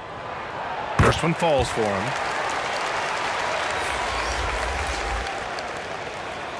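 A crowd cheers loudly and then dies down.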